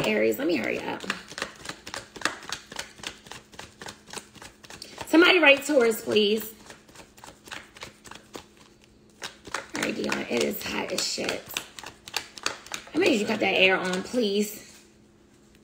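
Cards riffle and shuffle in a woman's hands.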